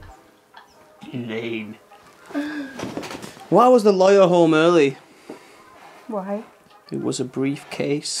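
A young man speaks close by, drawling and groaning with a strained voice.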